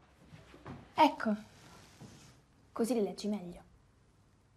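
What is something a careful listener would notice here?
A young woman speaks quietly up close.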